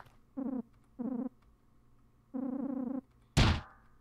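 A game's text blips chirp in short bursts.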